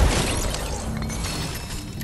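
Gunshots crack in quick bursts from a video game.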